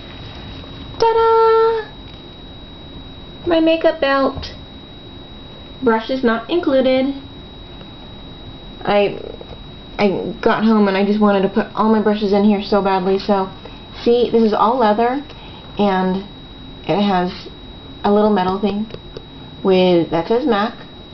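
A woman talks animatedly close to a microphone.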